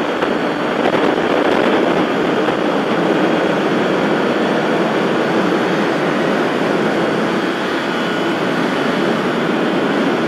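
A motorcycle engine hums steadily at speed.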